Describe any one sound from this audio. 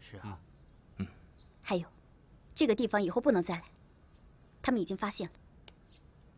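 A young woman speaks calmly.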